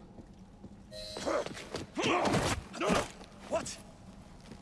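A young man grunts and shouts in a scuffle.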